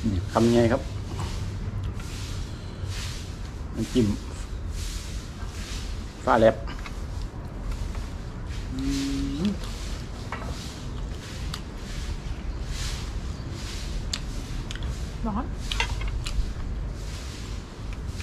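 A man chews food noisily up close.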